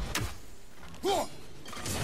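A heavy axe swings through the air with a whoosh.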